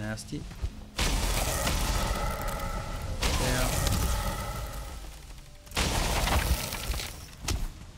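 Weapons swing and strike loudly in a game fight.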